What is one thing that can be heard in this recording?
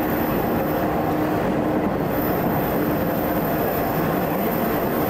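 A train's motor whines with a wavering hum.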